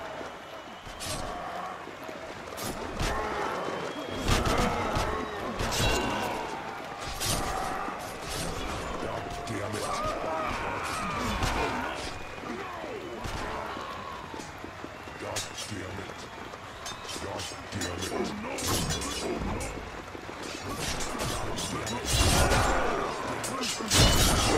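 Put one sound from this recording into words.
Swords clash and strike in a close fight.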